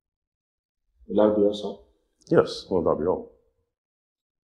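A second man answers calmly nearby.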